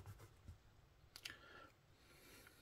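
Small metal parts click against each other.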